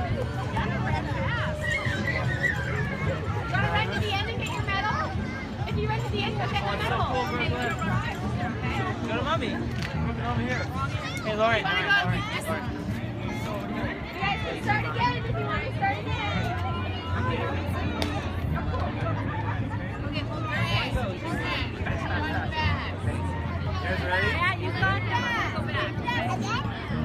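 A crowd of adults chatters and cheers outdoors.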